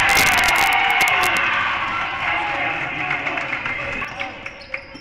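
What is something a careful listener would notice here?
A crowd cheers in an echoing gym.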